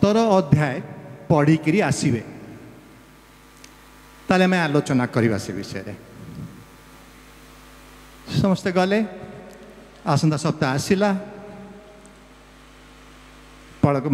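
A middle-aged man speaks with emphasis into a microphone, his voice amplified and echoing, in short bursts with pauses.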